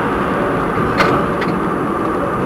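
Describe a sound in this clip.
Tram wheels click over rail joints.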